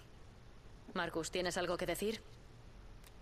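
A young woman asks a question calmly.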